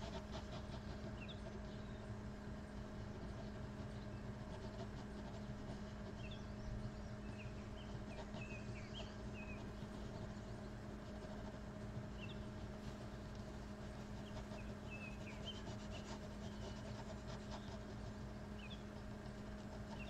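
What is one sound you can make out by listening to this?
A ballpoint pen scratches softly on paper.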